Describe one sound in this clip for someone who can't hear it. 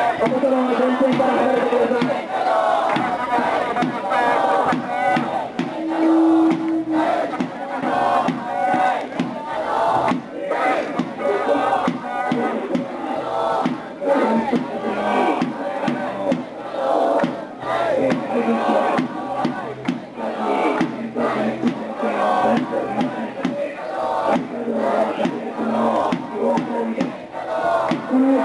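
A crowd of men and women shout and argue loudly outdoors.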